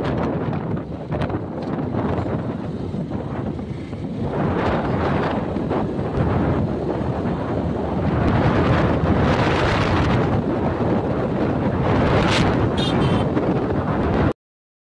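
Wind rushes loudly past a moving motorbike.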